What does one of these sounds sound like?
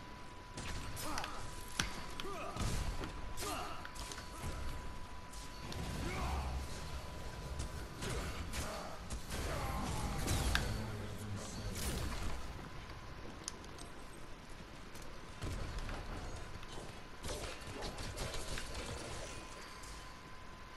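Sword blades swish and clash in quick strikes.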